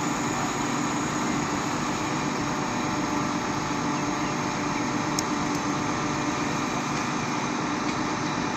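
A concrete pump engine rumbles steadily nearby.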